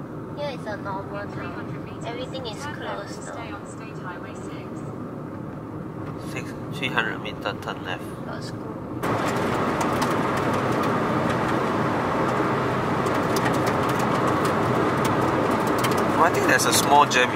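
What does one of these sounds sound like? Tyres rumble steadily on the road from inside a moving car.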